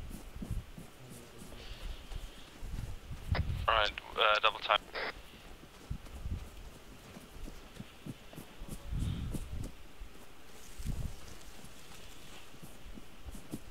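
Footsteps thud on dirt and gravel.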